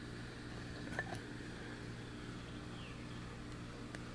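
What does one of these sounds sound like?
A thin metal blade clinks softly as it is picked up.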